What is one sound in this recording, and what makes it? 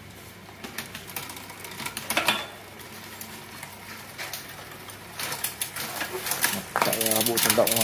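A bicycle chain rattles and clicks as a crank is turned by hand.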